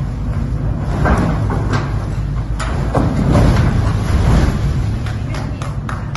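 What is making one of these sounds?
A large mass of rock and earth crashes down and rumbles in an echoing pit.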